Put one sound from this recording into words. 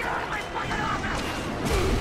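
A burst of fire roars briefly.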